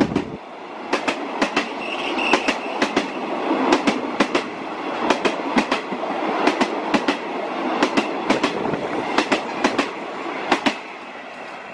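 A passenger train's wheels clack rhythmically over rail joints as it passes close by.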